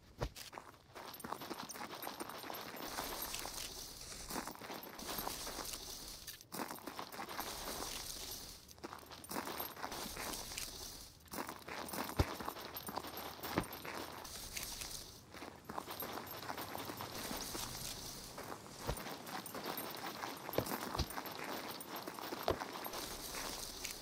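Footsteps crunch through dry grass and brush.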